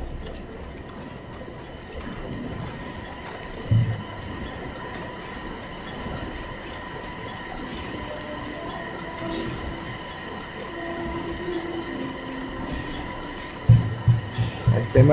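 Factory machinery hums and whirs steadily nearby.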